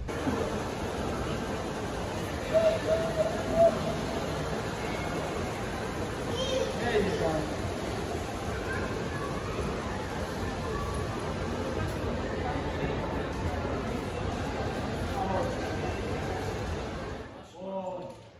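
A crowd murmurs in a large, echoing hall.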